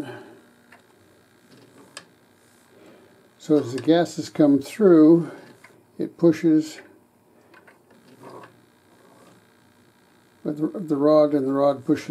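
A metal sleeve slides and clicks along a metal rod.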